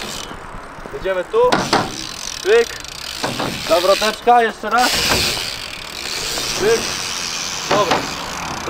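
Bike tyres roll and rumble over concrete and a wooden ramp.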